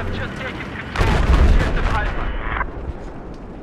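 A loud blast booms and echoes away.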